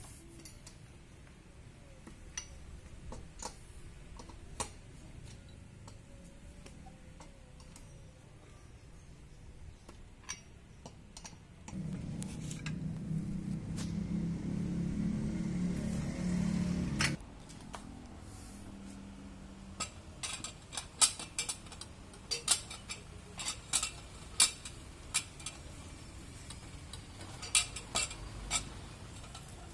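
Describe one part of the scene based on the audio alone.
A wrench clicks and clanks against wheel nuts.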